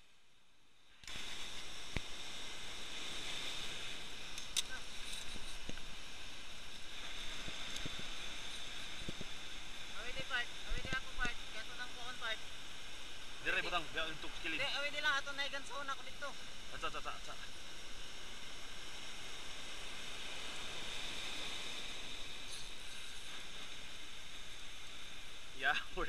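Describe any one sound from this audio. Waves crash and churn against rocks below, heard outdoors in a strong wind.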